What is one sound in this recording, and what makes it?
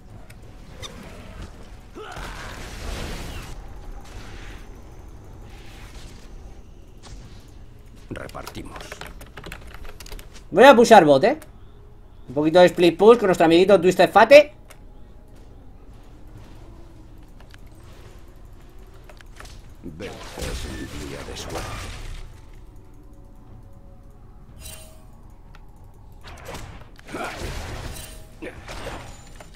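Magic spells burst and crackle in a video game battle.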